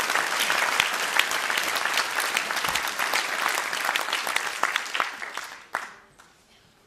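An audience claps loudly in a large hall, then the applause fades away.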